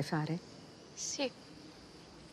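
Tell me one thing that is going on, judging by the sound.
A young girl answers briefly and quietly, close by.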